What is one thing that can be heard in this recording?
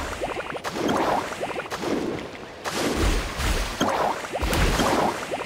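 Video game fight effects whoosh and clash in quick bursts.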